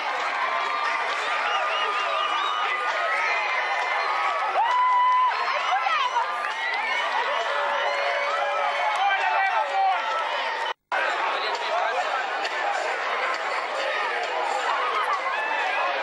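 A crowd of young people sings and cheers loudly outdoors.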